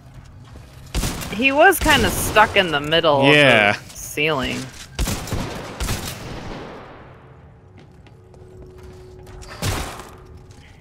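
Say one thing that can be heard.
Gunshots ring out in short bursts with a sharp echo.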